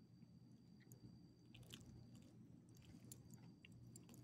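A dog sniffs and snuffles close by.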